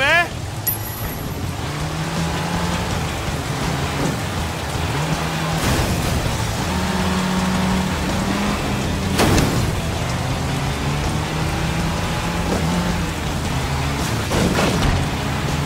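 A van engine hums and revs as it drives.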